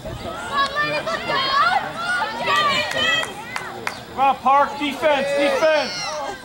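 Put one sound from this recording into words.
Young girls shout and cheer excitedly outdoors.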